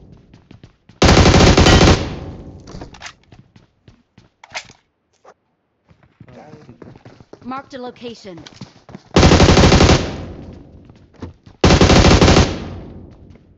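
A rifle fires in loud rapid bursts.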